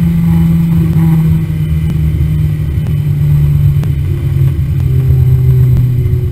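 Wind rushes past the car.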